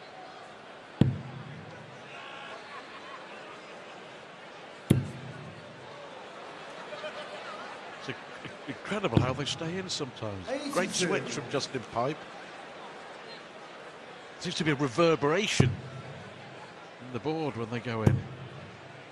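Darts thud sharply into a dartboard.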